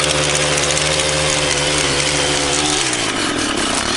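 A petrol string trimmer hums steadily, then winds down.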